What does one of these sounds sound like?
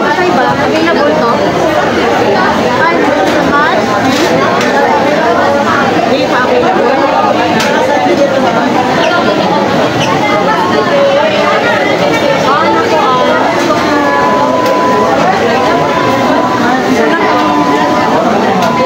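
A crowd of people chatter all around in a busy, echoing room.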